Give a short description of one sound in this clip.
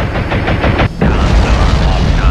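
A huge explosion booms with a deep roar.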